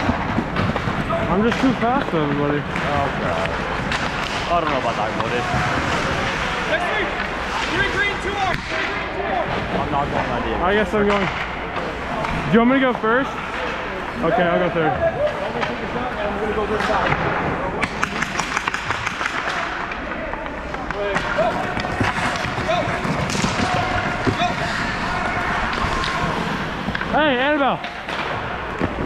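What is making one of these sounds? Skates scrape and carve on the ice.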